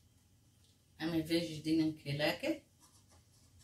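A middle-aged woman speaks briefly and calmly, close by.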